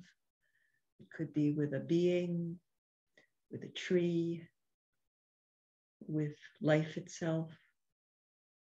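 An elderly woman speaks calmly in short phrases, heard through an online call.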